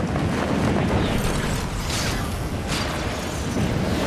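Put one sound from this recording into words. A glider snaps open with a rustling flutter.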